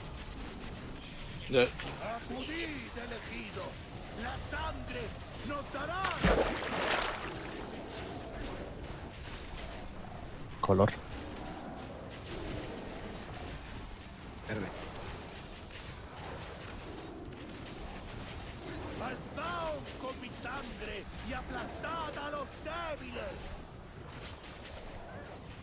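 Game spell effects crackle and whoosh during a battle.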